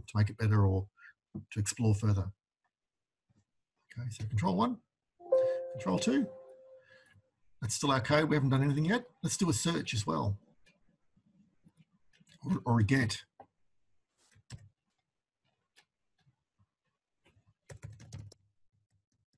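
A man talks calmly and close to a microphone, in short bursts.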